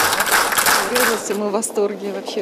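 A middle-aged woman speaks close up.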